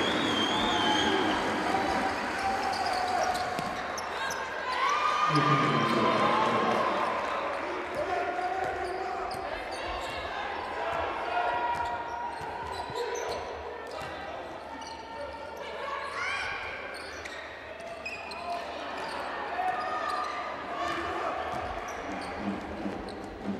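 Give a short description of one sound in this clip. A crowd cheers and murmurs in a large echoing hall.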